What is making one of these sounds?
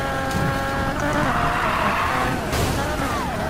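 Tyres screech as a car slides around a bend.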